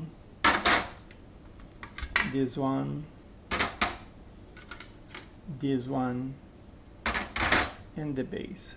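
Plastic trays clatter as they are handled.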